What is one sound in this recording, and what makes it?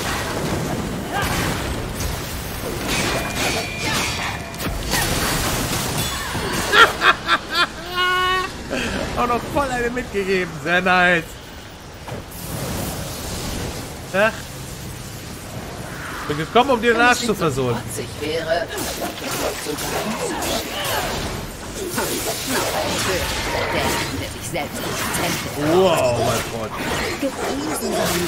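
Game combat sounds clash with blows and magic bursts.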